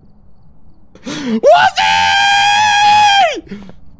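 A young man screams a long, high sustained note into a microphone.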